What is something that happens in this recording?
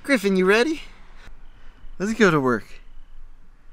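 A man speaks cheerfully, close by.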